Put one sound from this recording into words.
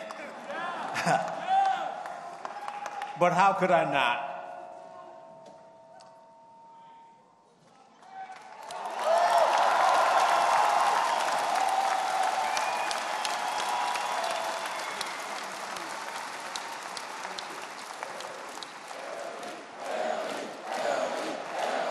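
An elderly man speaks with emotion into a microphone in a large echoing hall.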